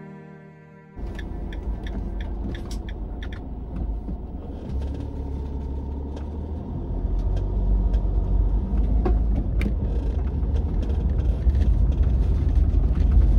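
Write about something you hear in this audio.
A car engine rumbles low as the car drives along a road.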